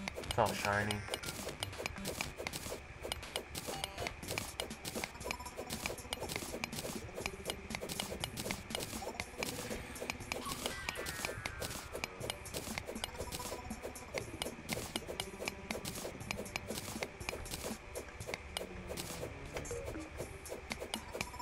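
A pickaxe taps rapidly against rock and ore.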